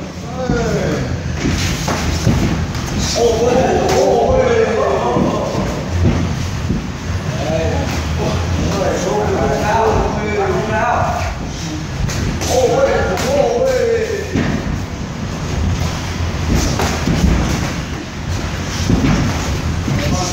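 Kicks and punches thud against padded shin guards and gloves.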